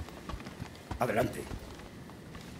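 A man shouts a short call.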